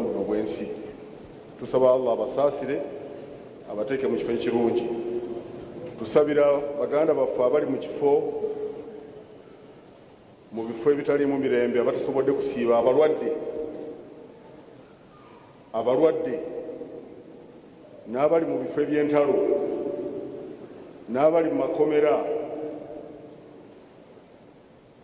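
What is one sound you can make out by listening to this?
A man speaks in long, drawn-out phrases through a microphone and loudspeakers, echoing in a large hall.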